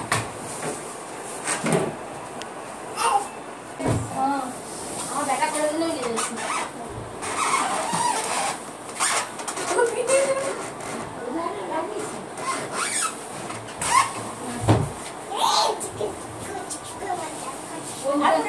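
A mattress thumps and rustles as it is moved.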